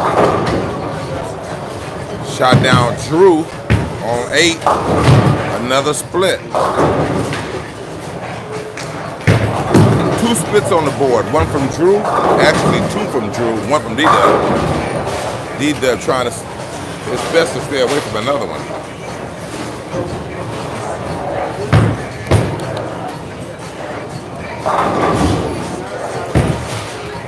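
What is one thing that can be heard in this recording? Men talk nearby in an echoing hall.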